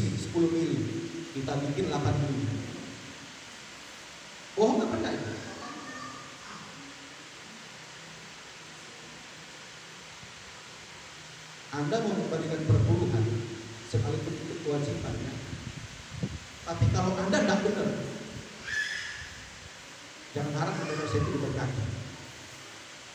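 A man speaks with animation through a microphone and loudspeakers in a large echoing hall.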